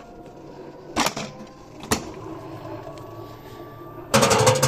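A washing machine door bangs shut.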